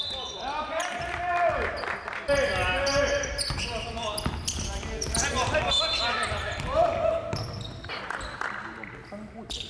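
Sneakers squeak sharply on a wooden floor in a large echoing gym.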